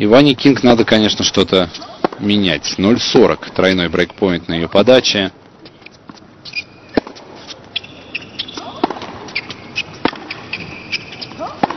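Tennis rackets strike a ball back and forth in a rally.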